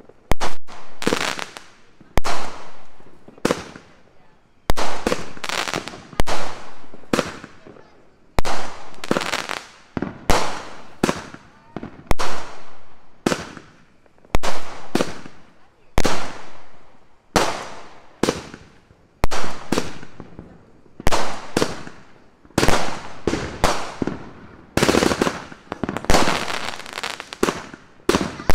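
Fireworks burst with loud, sharp bangs again and again.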